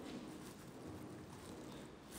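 A marker squeaks faintly across a whiteboard.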